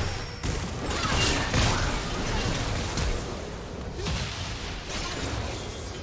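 Blows and impacts thud during the fight.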